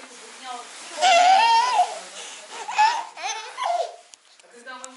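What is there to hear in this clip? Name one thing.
A baby squeals with delight.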